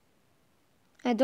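A boy talks loudly into a microphone.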